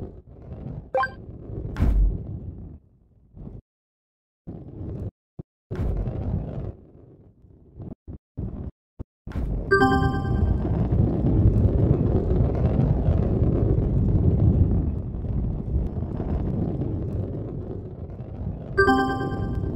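A ball rolls along with a low rumble.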